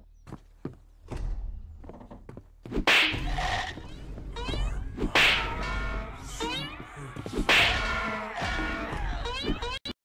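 Fists punch a body with heavy thuds.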